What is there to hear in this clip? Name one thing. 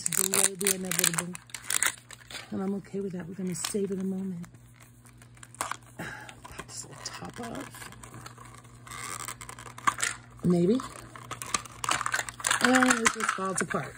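Plastic parts click and snap as a hollow toy ball is twisted open.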